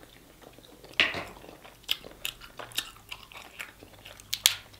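Crab shells crack and crunch in hands close by.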